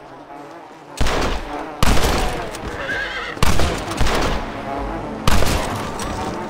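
Rifle shots ring out loudly, one after another.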